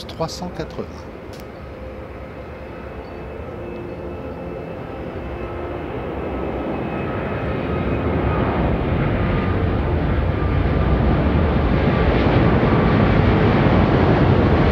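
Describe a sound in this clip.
A jet airliner's engines roar, growing louder as it takes off overhead.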